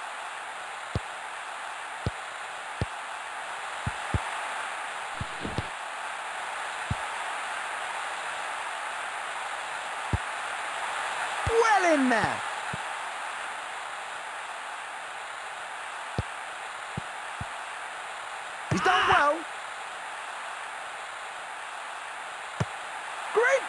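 A football is kicked with short, sharp thuds.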